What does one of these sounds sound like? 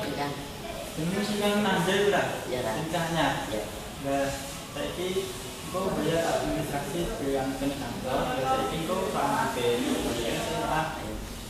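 A teenage boy answers briefly up close.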